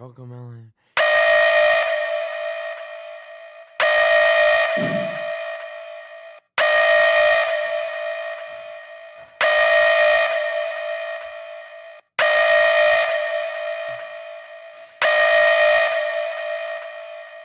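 A loud electronic alarm blares in repeated blasts, each fading before the next.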